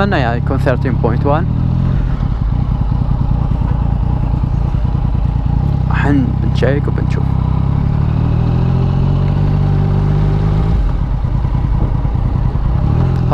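A motorcycle engine hums and rumbles steadily at low speed.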